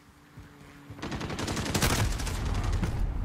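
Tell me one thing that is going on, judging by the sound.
Rapid gunshots fire loudly at close range.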